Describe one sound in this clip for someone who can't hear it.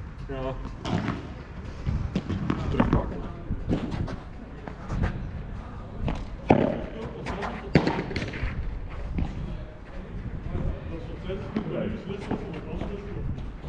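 A ball bounces on the court and off the glass walls.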